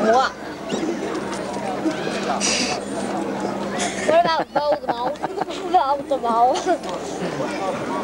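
Young girls talk and laugh close by.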